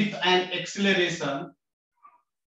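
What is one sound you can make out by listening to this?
A man speaks clearly and calmly, close by.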